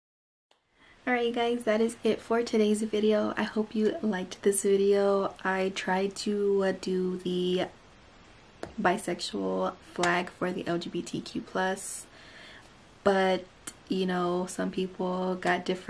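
A young woman talks with animation, close to a microphone.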